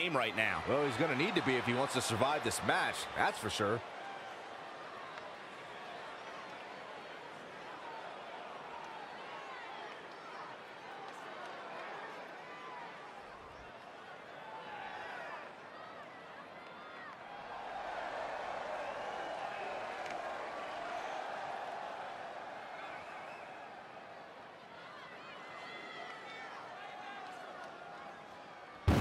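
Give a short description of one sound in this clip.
A crowd cheers and chants in a large echoing arena.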